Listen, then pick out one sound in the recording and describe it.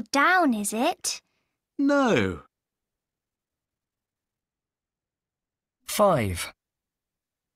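A woman speaks clearly through an online call, with long pauses.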